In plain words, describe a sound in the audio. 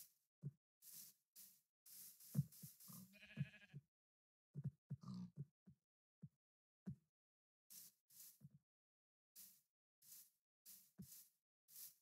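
Footsteps patter softly on grass.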